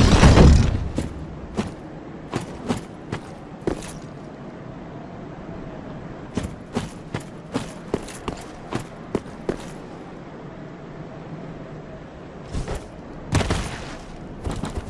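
Armoured footsteps crunch steadily on leaves and stone.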